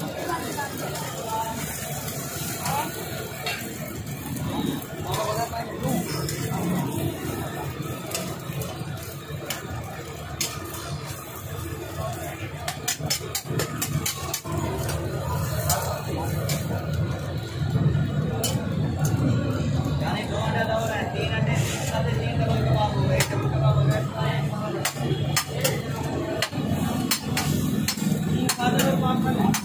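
Many people murmur and chatter in the background.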